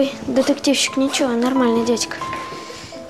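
A boy speaks up close.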